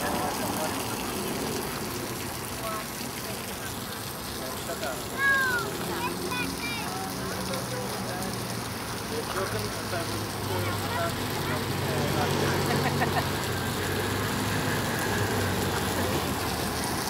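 Water splashes steadily from a fountain outdoors.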